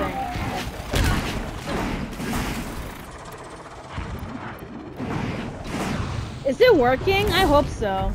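Arrows thud into a machine with sharp impacts.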